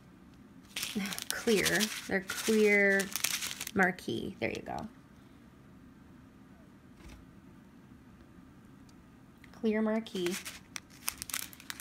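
A plastic bag of small beads crinkles and rustles in a hand.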